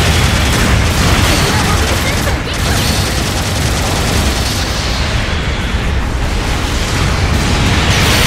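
Thrusters roar steadily as a giant robot flies.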